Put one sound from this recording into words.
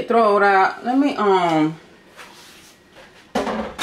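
A metal pot clanks as it is set down.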